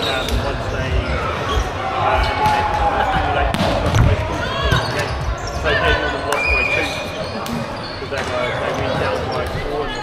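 A crowd of players and spectators chatters in a large echoing hall.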